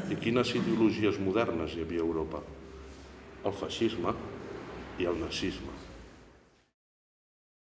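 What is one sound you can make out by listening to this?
A middle-aged man speaks calmly in a large room that echoes a little.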